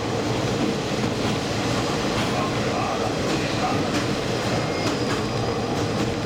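Train wheels clatter over rail joints on a metal bridge.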